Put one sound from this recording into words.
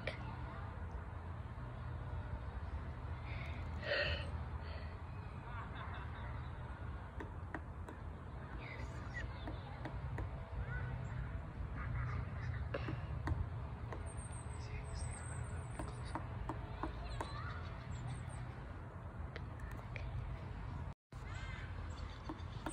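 A woodpecker taps on a tree trunk.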